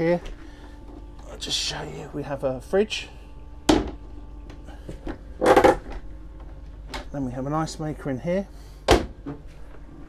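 A cabinet door latch clicks and the door swings open.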